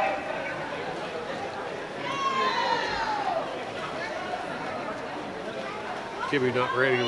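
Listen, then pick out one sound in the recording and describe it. Swimmers splash through the water in a large echoing hall.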